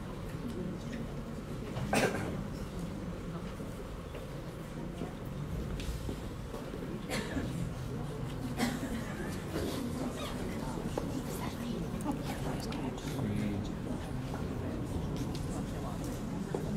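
A crowd of men and women murmurs and talks in a large room.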